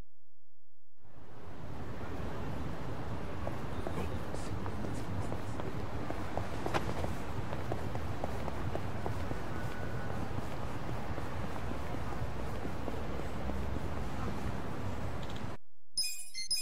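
A busy street hums with a murmuring crowd.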